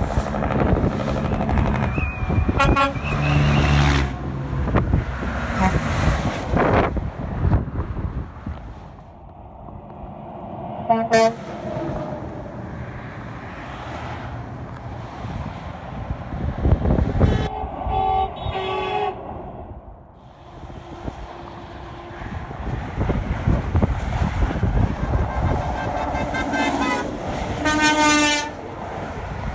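Traffic roars steadily past on a highway below.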